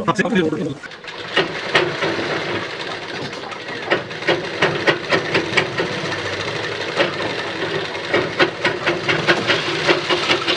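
A sewing machine whirs and clatters rapidly as it stitches.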